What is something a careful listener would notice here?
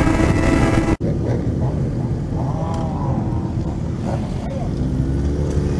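Motorcycle engines idle nearby.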